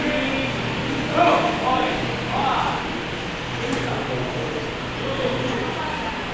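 Many children's voices chatter and call out in a large echoing hall.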